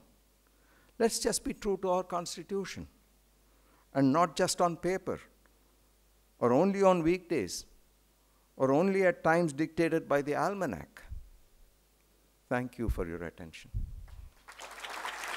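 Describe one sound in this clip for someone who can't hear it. An elderly man speaks slowly into a microphone, in short phrases.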